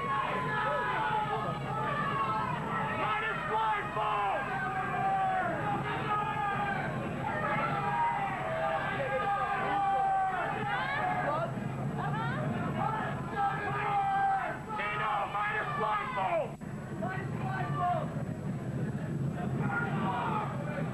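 A crowd of people chatter all around.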